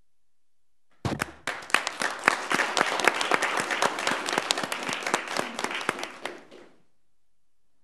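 A small group of people applaud in a large room.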